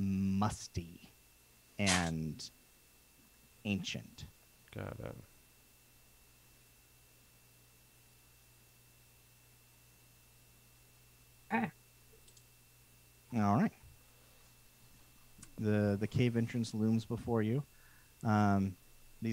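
A man speaks with animation through a headset microphone, heard as if over an online call.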